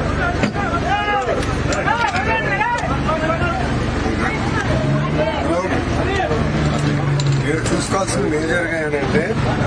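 Several men and women talk over each other.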